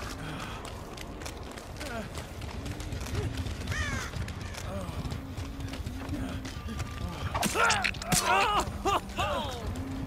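Footsteps run quickly over rough ground and rustling grass.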